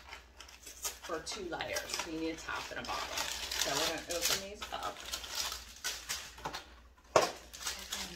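A cardboard box rattles as a woman handles it.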